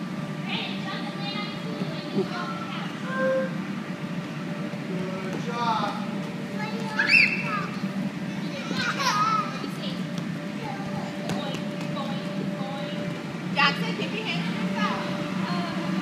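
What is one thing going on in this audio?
Young children shout and squeal playfully nearby.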